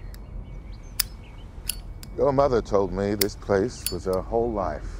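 A lighter lid clicks open with metallic snaps.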